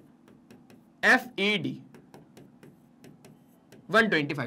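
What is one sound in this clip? A man speaks clearly and with animation, close to a microphone.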